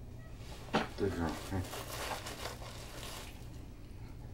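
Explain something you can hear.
A man speaks calmly and close.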